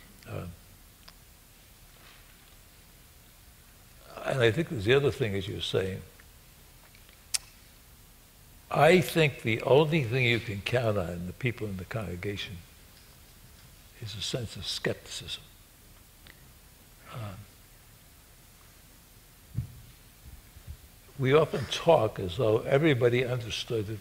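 An elderly man speaks calmly and thoughtfully into a close microphone, with pauses.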